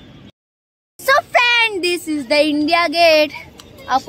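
A boy talks close to a phone microphone.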